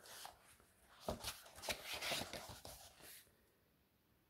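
Paper pages rustle and flip as a book is opened.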